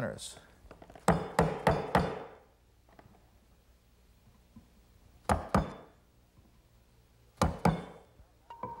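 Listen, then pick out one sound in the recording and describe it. A chisel taps and scrapes against wood.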